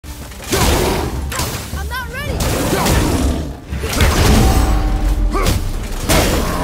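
Heavy blows thud and clang in a fight.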